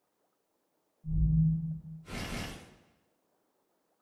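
A game menu chimes with a sweeping whoosh as it switches pages.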